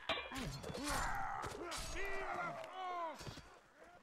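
Muskets fire with sharp cracks nearby.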